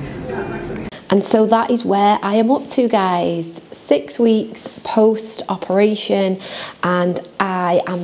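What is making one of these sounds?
A young woman talks with animation, close up.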